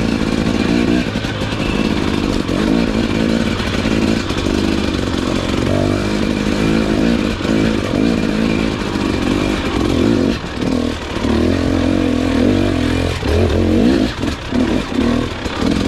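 Tyres rumble and bump over a rough dirt trail.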